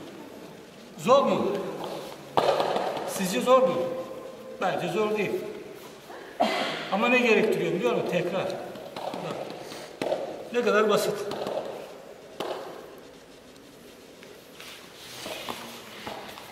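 A middle-aged man speaks in a large echoing room.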